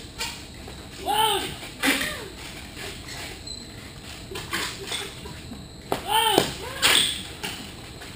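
Rubber balloons squeak and rub sharply as they are twisted.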